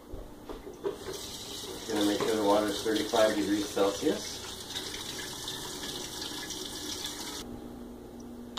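Water runs from a tap into a bowl.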